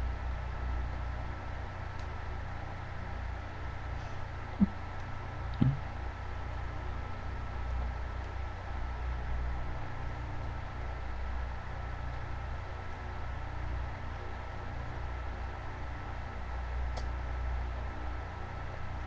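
Background music from a video game plays steadily.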